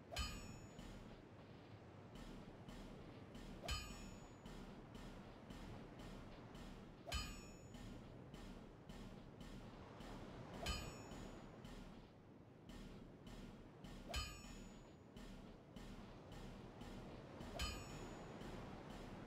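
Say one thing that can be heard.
A bright metallic chime rings out again and again at an even pace.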